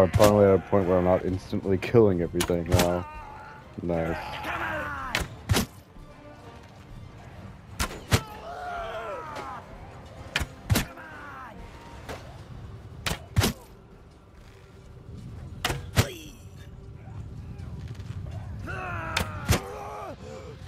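A bow twangs as arrows are loosed, again and again.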